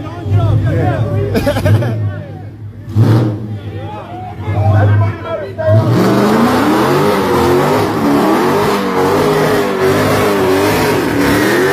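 A car engine revs loudly in bursts.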